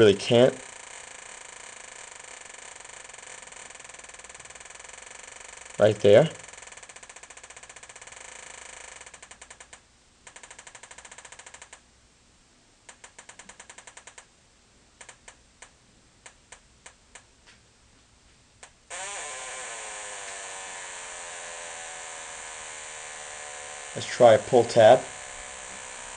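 A metal detector gives short, loud warbling tones.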